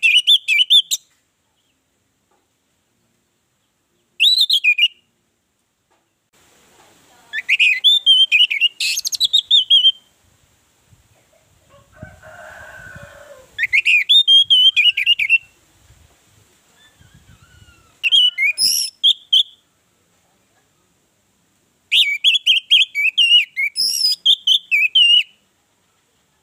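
An orange-headed thrush sings in bursts of varied, whistled phrases.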